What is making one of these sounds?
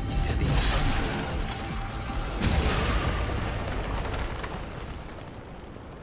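A loud explosion booms and rumbles, then slowly fades.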